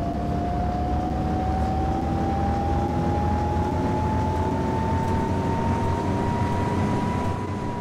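A bus motor hums with a steady whine that slowly rises in pitch as the bus speeds up.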